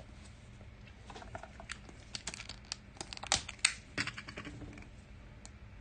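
Plastic wrapping crinkles and rustles as cards are handled.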